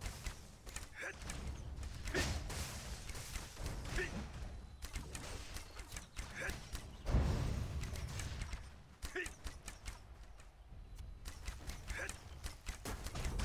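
Weapons strike in a fast combat fight, with sharp hits and clangs.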